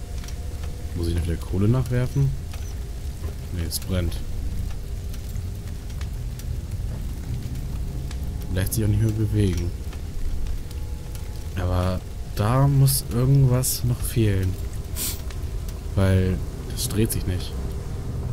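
A young man talks now and then into a close microphone, in a calm voice.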